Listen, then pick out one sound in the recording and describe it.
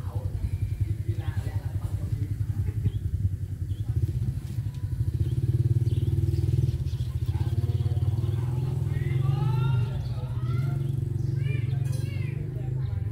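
A hand rubs softly through fur.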